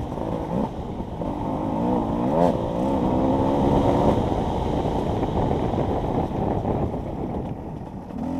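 A dirt bike engine revs and roars up and down close by.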